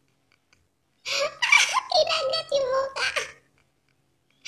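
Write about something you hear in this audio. A young woman laughs loudly and close by.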